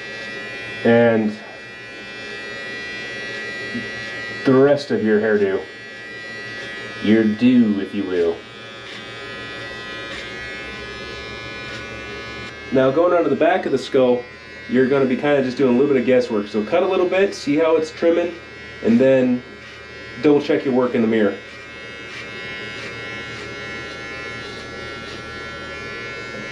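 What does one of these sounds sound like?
Electric hair clippers buzz steadily.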